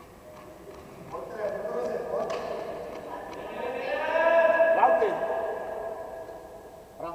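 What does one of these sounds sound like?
A man shouts loudly across a large echoing hall.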